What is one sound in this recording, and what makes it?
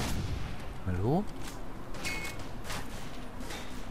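A rifle bolt clicks as the rifle is reloaded.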